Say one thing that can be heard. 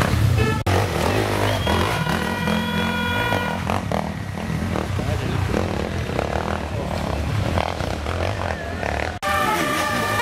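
A dirt bike engine revs hard and sputters close by.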